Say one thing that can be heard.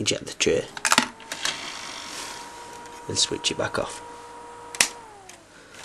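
A disc drive spins with a steady whine.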